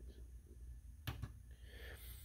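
A finger clicks a small push button.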